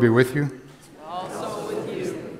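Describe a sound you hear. A congregation of men and women sings a reply together.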